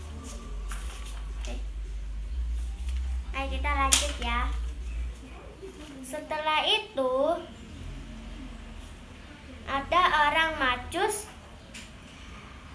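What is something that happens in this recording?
Cards rustle in a young girl's hands.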